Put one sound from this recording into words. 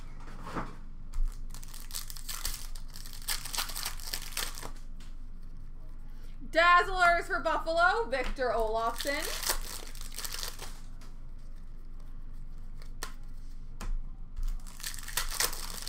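Plastic card packs rustle and crinkle as they are handled.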